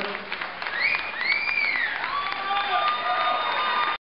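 A crowd claps along in a rhythm.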